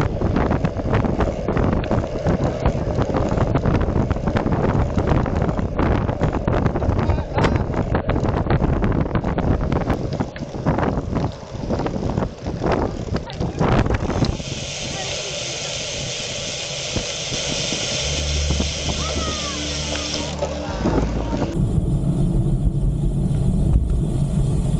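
Bicycle wheels hum on the road.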